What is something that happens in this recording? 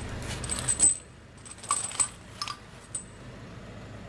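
A heavy metal chain clinks and rattles close by.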